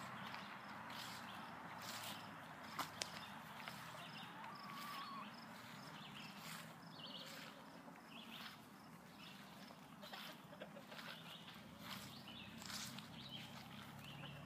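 Chickens cluck softly outdoors.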